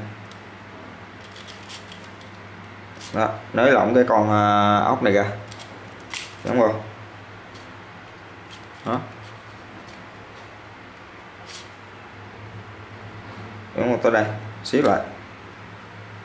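Metal hand tools clink and tap together as they are handled.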